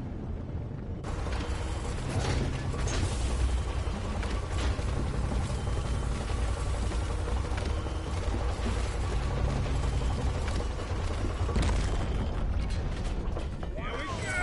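A heavy lift rumbles steadily as it descends.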